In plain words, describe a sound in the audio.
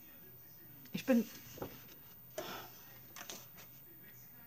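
Paper sheets rustle as they are shuffled.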